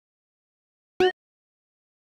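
A short electronic menu chime sounds.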